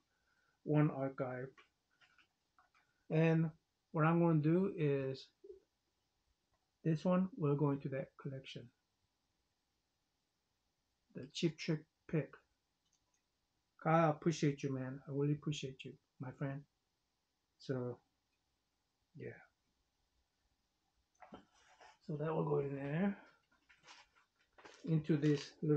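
A man talks calmly and closely, in short bursts with pauses.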